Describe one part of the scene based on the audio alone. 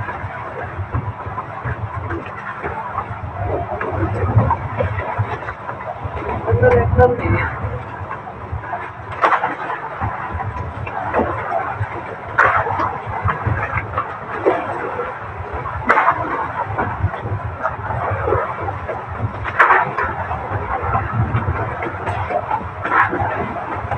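A man knocks and bangs objects against a boat deck.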